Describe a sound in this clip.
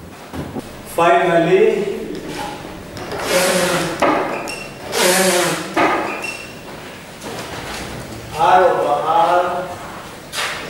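A man speaks calmly and clearly, lecturing.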